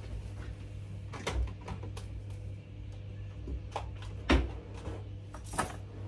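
A wardrobe door slides and knocks shut.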